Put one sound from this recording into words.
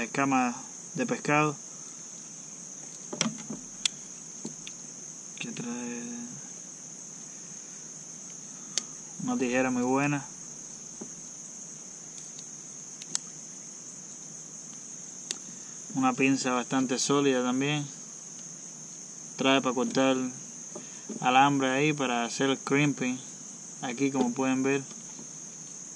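A man speaks calmly, close by, in short bursts.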